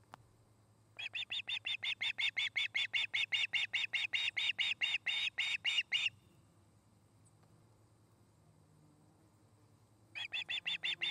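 A young bird of prey calls close by in rapid, repeated high-pitched chirps.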